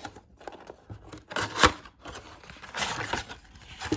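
A cardboard box flap is pulled open.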